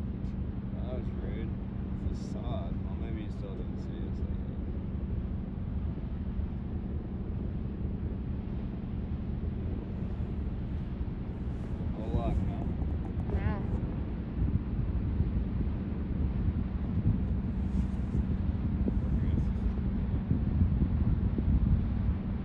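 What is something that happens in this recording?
The diesel engine of a large freighter drones low as the ship passes.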